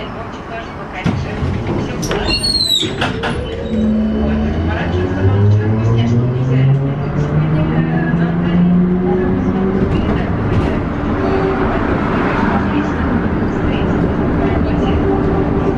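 Wheels rumble and rattle on the tracks.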